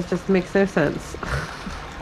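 Water pours from a kettle into a cup.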